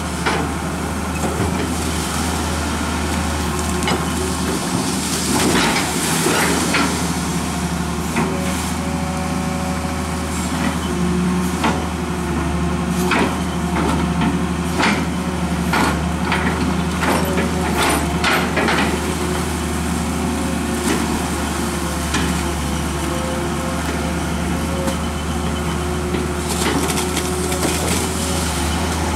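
Metal parts of an excavator clank and knock.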